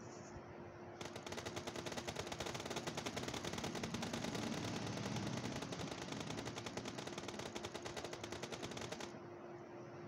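Rapid gunfire rattles steadily, then stops.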